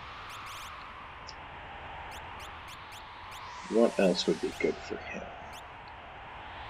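Short electronic menu blips tick quickly, one after another.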